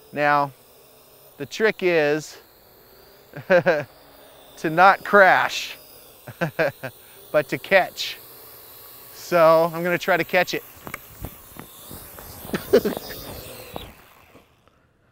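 A small drone buzzes overhead.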